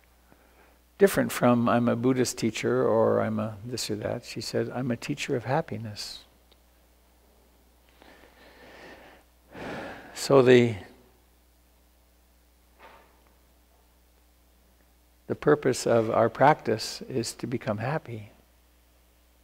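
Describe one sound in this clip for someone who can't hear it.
An older man speaks calmly and close to a microphone, as if on an online call.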